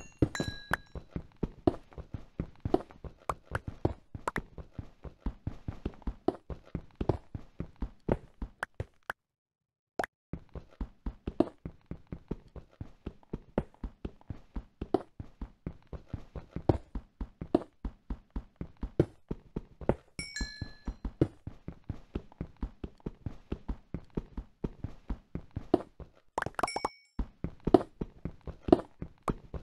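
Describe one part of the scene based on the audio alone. A pickaxe chips at stone in quick repeated knocks.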